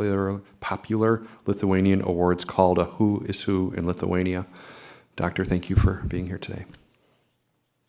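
A man speaks steadily into a microphone.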